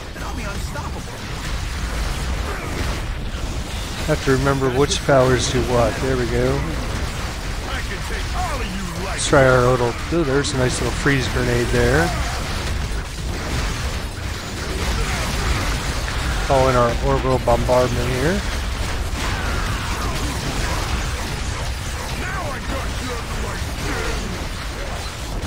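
Fire and energy blasts crackle and boom.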